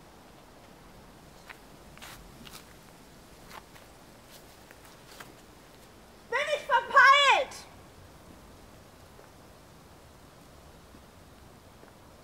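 Footsteps crunch on a gravel path.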